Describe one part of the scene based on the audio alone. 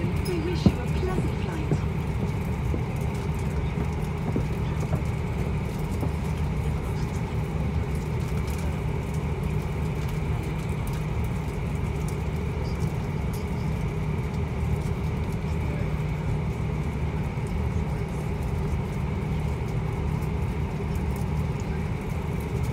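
Jet engines hum and drone steadily as an airliner taxis, heard from inside the cabin.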